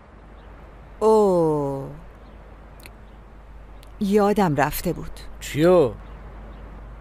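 A woman speaks calmly and coolly, close by.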